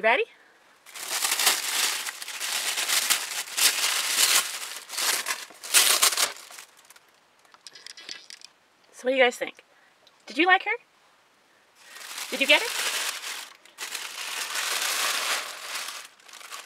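Tissue paper rustles and crinkles as it is pulled away.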